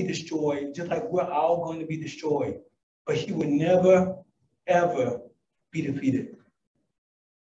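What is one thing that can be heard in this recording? A man speaks calmly into a microphone over loudspeakers.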